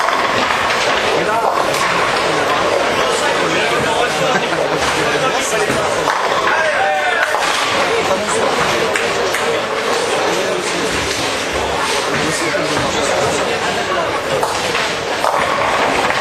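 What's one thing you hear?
Bowling pins crash and clatter as they are knocked down.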